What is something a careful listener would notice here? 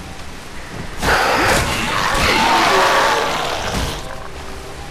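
A blade slashes and hacks into a creature in water.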